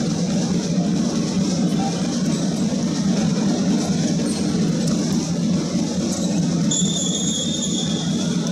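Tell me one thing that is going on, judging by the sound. Sports shoes squeak on a wooden court.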